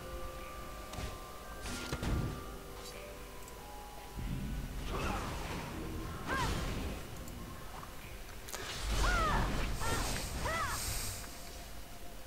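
Magic spells burst and crackle during a fight.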